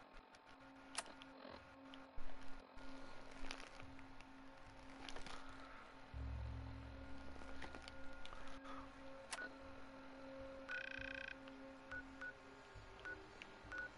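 Electronic menu clicks and beeps sound now and then.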